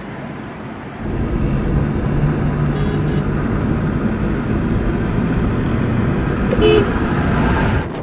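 Pickup trucks and motorbikes drive along a road with engines droning.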